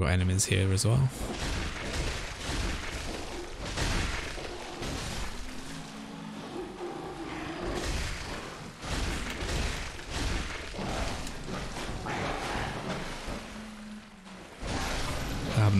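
Blades slash and thud against creatures in a fight.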